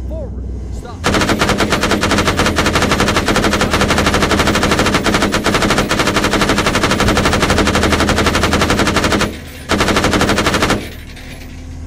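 A heavy machine gun fires long, rapid bursts.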